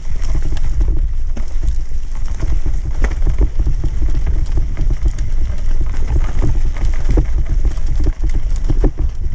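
Bicycle tyres roll and rattle over a rough dirt trail.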